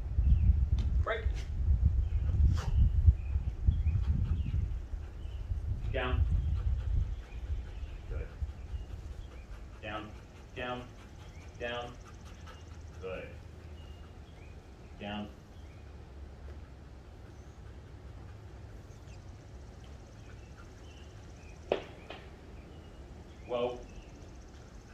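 A man calls out short commands to a dog nearby.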